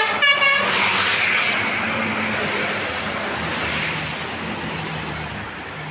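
A large bus engine rumbles as the bus drives past close by.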